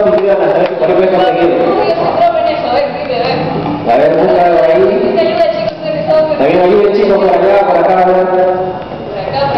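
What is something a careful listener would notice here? A young woman talks into a microphone through loudspeakers.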